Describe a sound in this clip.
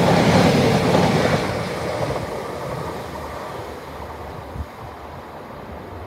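A train rushes past close by and fades into the distance.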